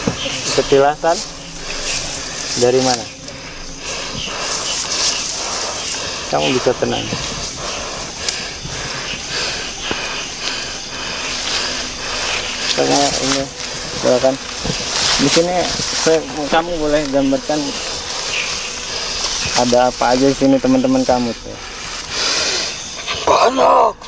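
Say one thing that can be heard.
Leaves rustle as a young man crawls through low plants.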